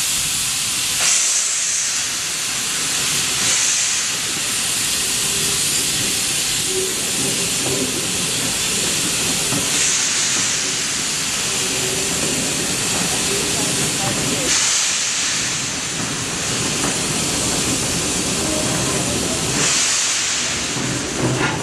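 Steam blasts in bursts from a locomotive.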